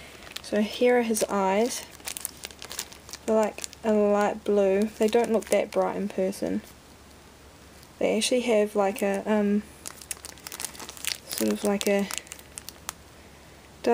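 A small plastic bag crinkles in a hand.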